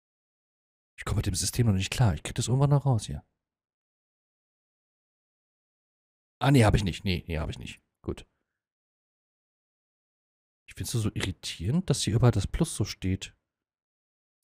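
A man talks casually into a close microphone, in short bursts.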